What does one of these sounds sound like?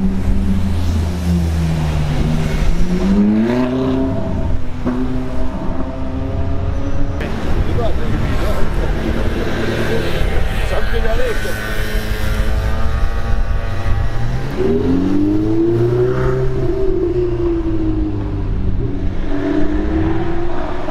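A sports car engine roars loudly, its pitch rising and falling as it revs and passes close by.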